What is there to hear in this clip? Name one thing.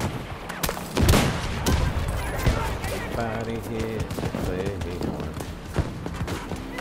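A rifle fires sharp, loud shots a few times.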